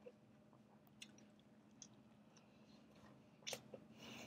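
A young woman bites and chews food noisily.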